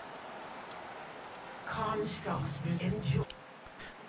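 Water roars steadily down a waterfall.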